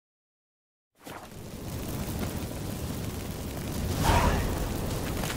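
Footsteps scuff along a stone floor in an echoing tunnel.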